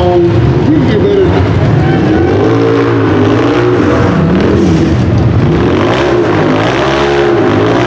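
An off-road buggy's engine revs loudly, rising and falling as the buggy climbs.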